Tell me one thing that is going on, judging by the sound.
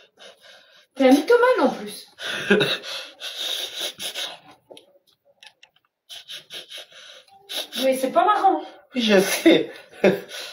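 A young man laughs loudly over an online call.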